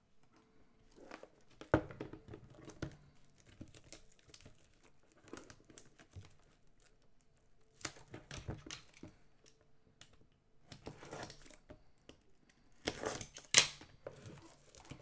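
Plastic wrapping crinkles and rustles as boxes are handled.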